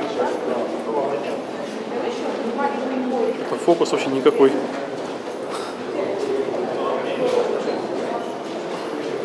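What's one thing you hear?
Men and women chat casually nearby, their voices echoing.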